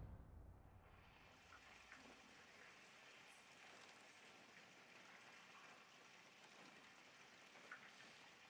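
Rain falls steadily outside.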